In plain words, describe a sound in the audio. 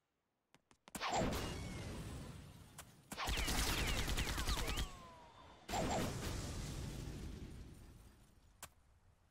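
Gunfire and explosions crackle and boom from a game.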